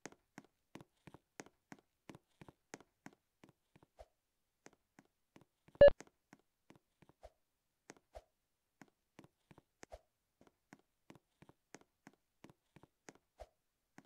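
Footsteps of a game character tap quickly and steadily.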